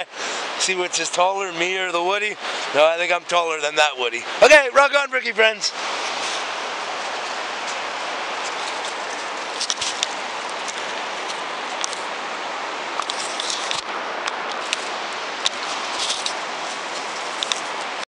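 A river rushes steadily nearby.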